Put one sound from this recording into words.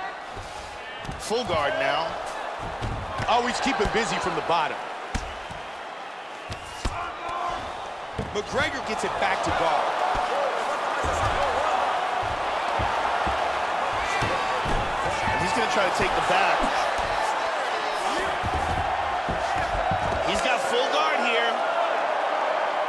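Punches thud on a body.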